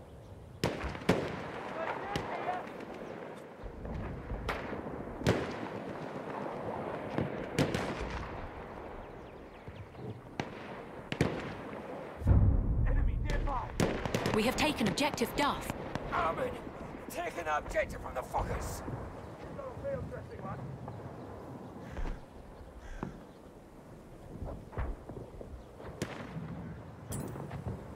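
A heavy machine gun fires in short bursts.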